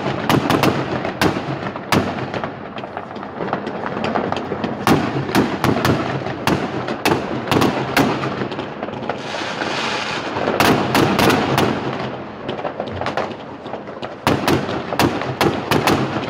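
Fireworks fizz and hiss as they burn.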